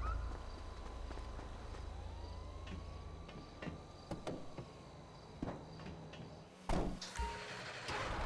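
A heavy tank engine rumbles and clanks.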